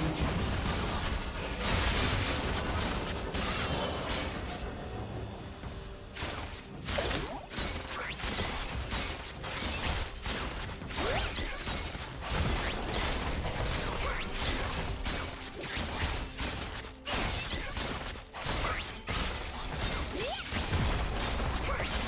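Game spells and attacks crackle and clash in a fight.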